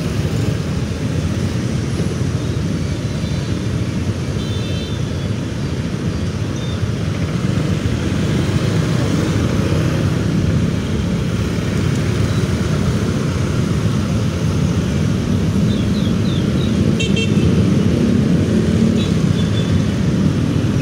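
Tyres hiss on a wet road as vehicles pass.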